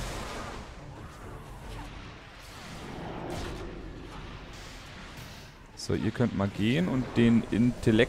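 Game combat effects whoosh and clash softly in the background.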